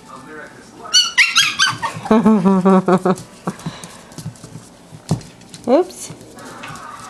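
A puppy yelps and whines in high squeals.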